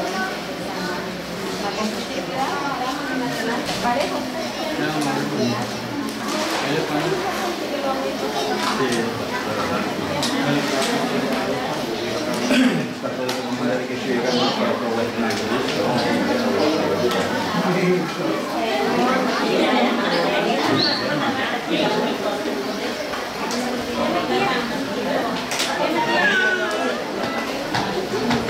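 Several men and women talk over one another indoors.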